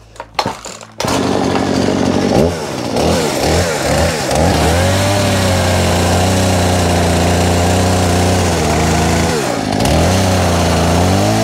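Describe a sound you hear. A chainsaw engine roars and revs while cutting wood.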